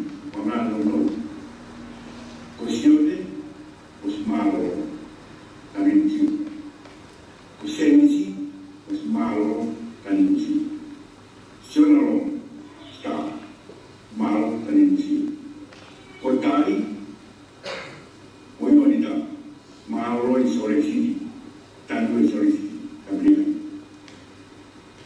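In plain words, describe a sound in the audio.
An elderly man speaks calmly over a loudspeaker, pausing between phrases.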